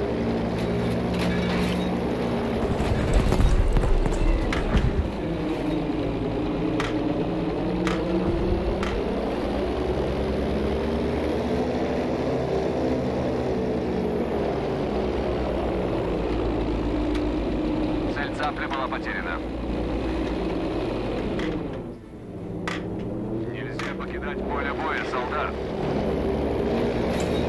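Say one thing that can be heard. Propeller engines drone steadily, rising and falling in pitch as a plane dives and climbs.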